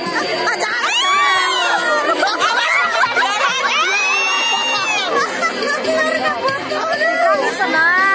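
A crowd of children and adults shouts and cheers excitedly outdoors.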